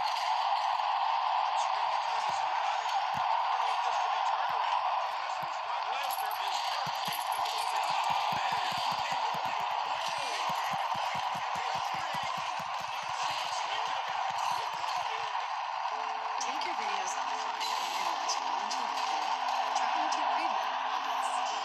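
A crowd roars and cheers steadily.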